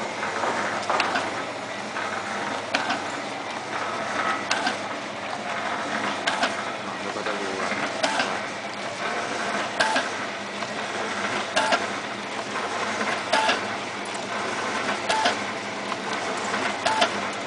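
Sealing jaws on a packing machine clack shut in a regular rhythm.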